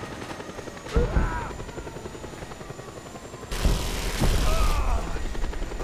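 Explosions boom loudly.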